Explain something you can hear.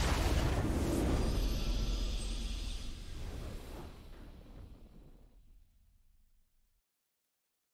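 A triumphant game fanfare swells and then fades out.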